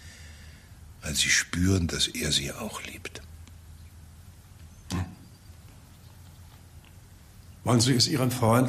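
An elderly man speaks calmly and gravely, close by.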